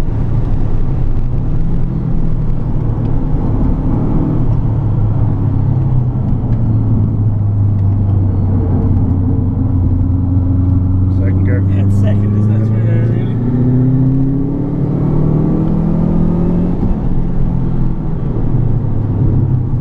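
A car engine roars loudly from inside the cabin, revving up and down through the gears.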